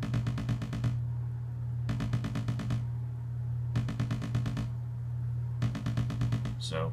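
A synthesizer plays a fast, repeating sequence of bright electronic notes in bursts.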